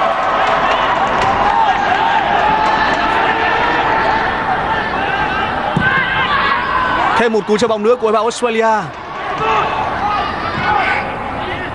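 A large stadium crowd cheers and chants steadily outdoors.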